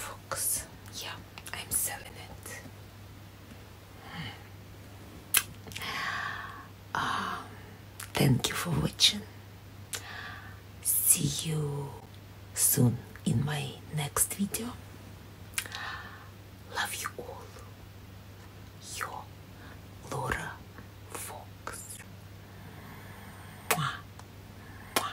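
A woman speaks softly and warmly, close to the microphone.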